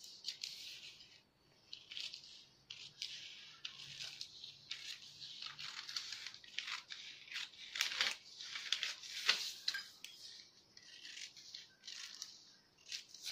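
Scissors snip and crunch through newspaper in short repeated cuts.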